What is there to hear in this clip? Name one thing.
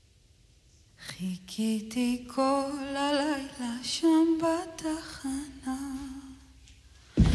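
A woman sings slowly into a microphone.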